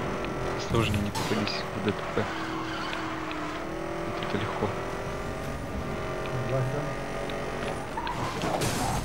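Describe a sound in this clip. A car engine roars steadily at high speed.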